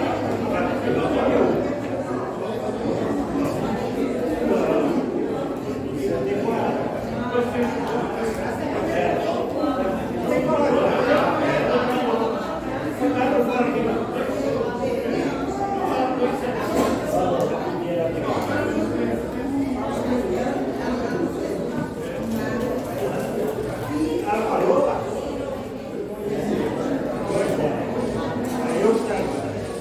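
Several elderly men and women chat with one another in a room.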